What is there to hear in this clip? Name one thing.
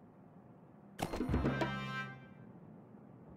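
A bright sparkling reward jingle rings out.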